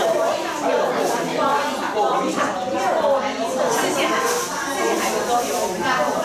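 A young woman speaks through a microphone.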